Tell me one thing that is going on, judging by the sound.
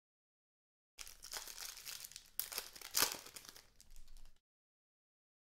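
Plastic wrappers and trading cards rustle and slide in someone's hands.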